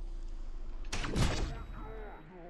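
A gunshot cracks sharply.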